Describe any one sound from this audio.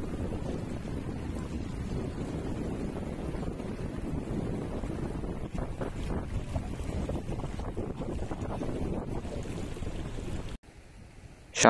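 A river rushes and splashes over stones.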